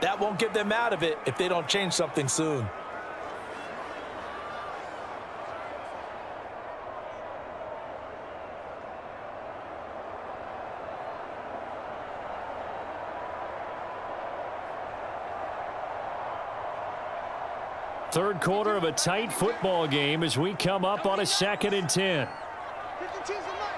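A large crowd murmurs steadily in an open stadium.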